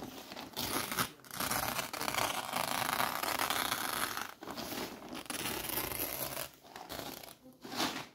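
A knife slices through a plastic tarp.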